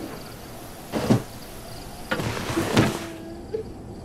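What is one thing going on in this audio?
A window slides open with a bump.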